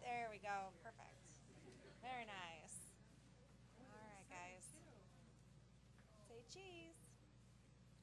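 Young people chatter and laugh in a room.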